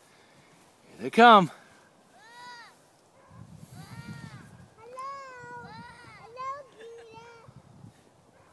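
A young child shouts and calls out in a high voice outdoors.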